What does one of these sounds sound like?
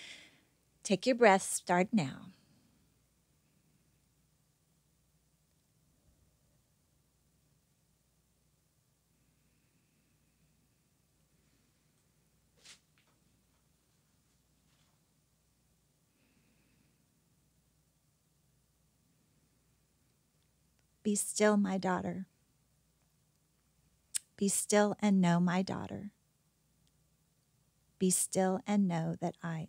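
A middle-aged woman speaks calmly and softly close to a microphone, in short phrases with long pauses.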